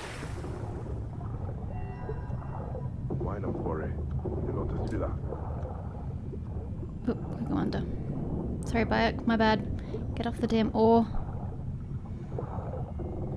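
Water rumbles in a low, steady murmur underwater.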